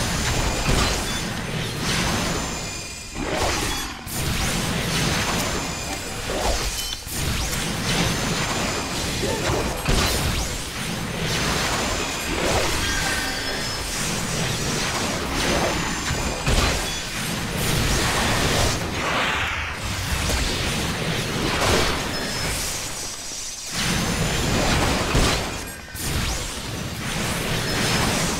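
Magic spells and weapon strikes burst and whoosh in a fast fight.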